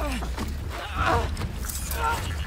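A man groans through clenched teeth in pain.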